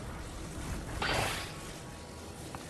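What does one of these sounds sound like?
A bright magical whoosh swells and fades.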